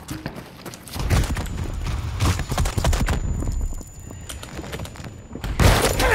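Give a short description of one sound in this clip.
Gunfire and bullet impacts crack close by.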